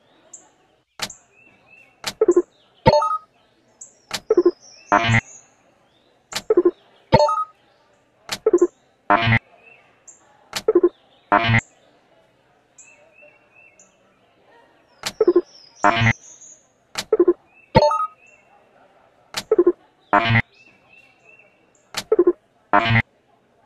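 Short electronic clicks and chimes sound again and again.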